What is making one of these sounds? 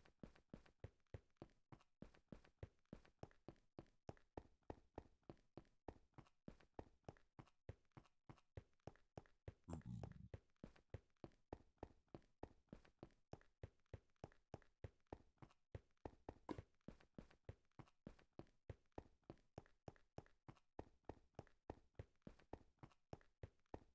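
Footsteps crunch quickly and steadily on stone.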